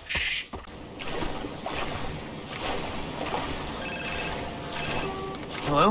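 Water splashes and laps around a swimmer.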